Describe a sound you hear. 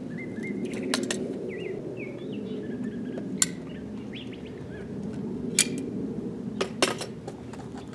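A caulking gun clicks sharply a few times.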